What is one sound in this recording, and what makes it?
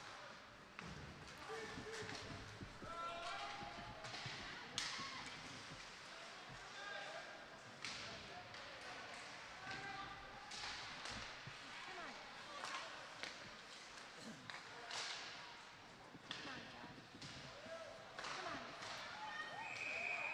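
A crowd murmurs and cheers in an echoing rink.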